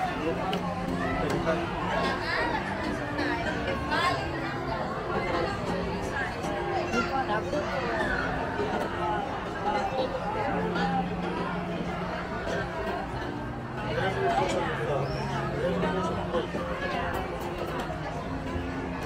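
A crowd of people chatter at outdoor tables nearby.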